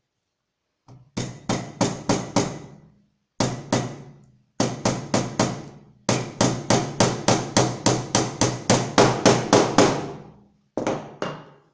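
A hammer taps a small nail into wood in quick, repeated blows.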